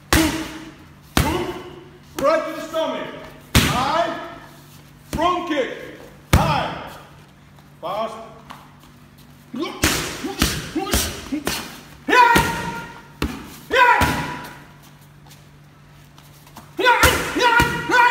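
Punches and kicks thud sharply against padded mitts.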